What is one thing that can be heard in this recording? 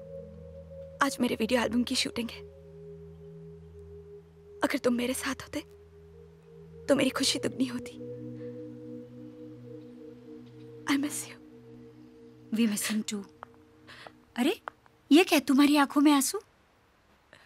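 A young woman speaks in a troubled, pleading voice.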